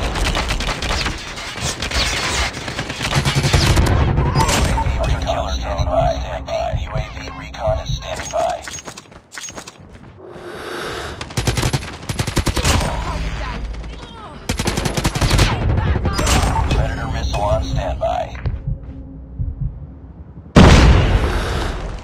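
Rapid machine gun fire rattles in bursts.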